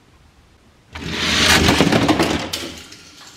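Toy cars rattle as they roll quickly down a plastic track.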